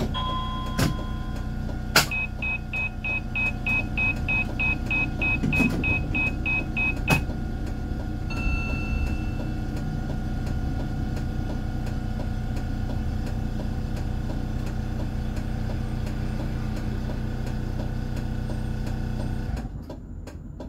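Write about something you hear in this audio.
A tram hums and rumbles steadily along its rails.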